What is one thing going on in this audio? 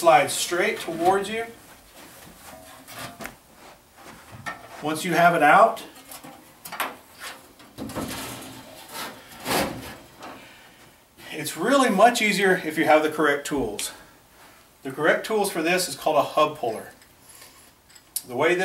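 A middle-aged man talks calmly and clearly, close by.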